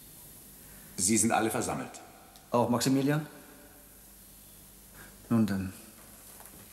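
A man speaks calmly in an echoing hall.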